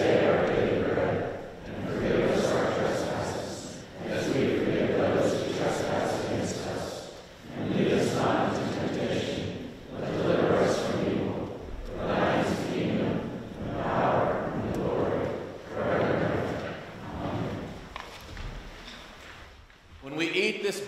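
A man prays aloud in a slow, echoing voice.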